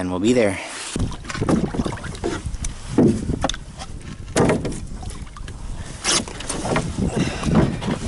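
A paddle pushes against rock and water.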